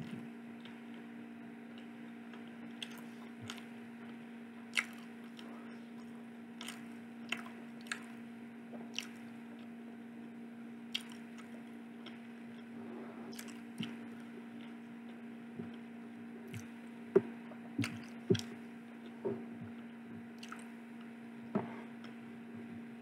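A teenage boy chews and smacks his lips close by.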